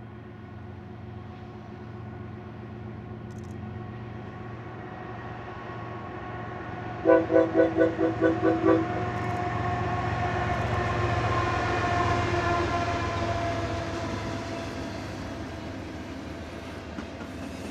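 A diesel train engine rumbles closer and passes by.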